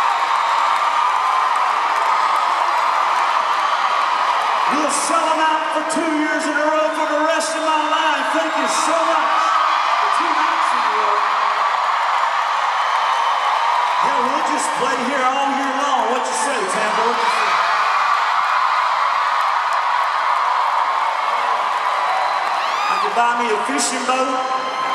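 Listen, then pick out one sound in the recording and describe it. A crowd cheers and screams loudly in a large echoing arena.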